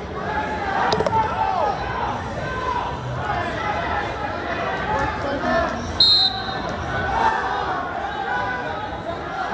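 A crowd of spectators cheers and shouts in a large echoing gym.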